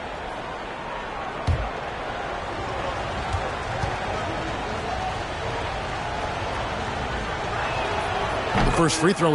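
A large crowd murmurs steadily in an echoing arena.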